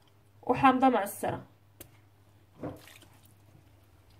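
Liquid pours into a pot.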